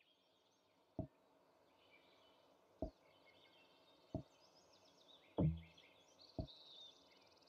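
Short soft clicks sound as menu options change.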